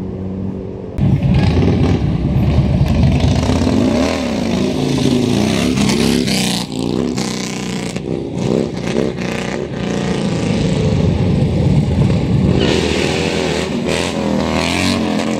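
A motorcycle engine roars and revs as it rides past close by.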